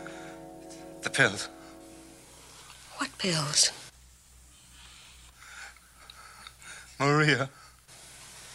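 A man speaks in a slow, drawling voice close by.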